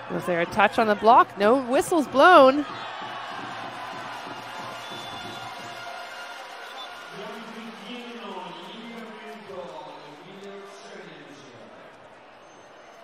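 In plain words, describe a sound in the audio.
A large crowd cheers and applauds in an echoing hall.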